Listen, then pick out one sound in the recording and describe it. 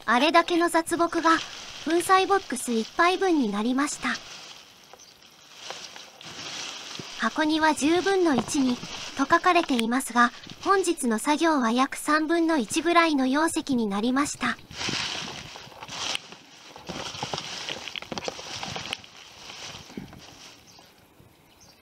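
Dry leaves and twigs rustle and crackle under a hand.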